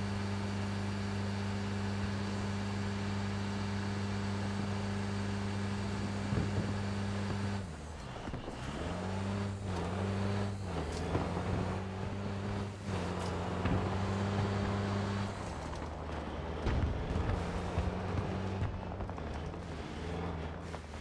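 An armoured vehicle's engine hums and rumbles steadily as it drives.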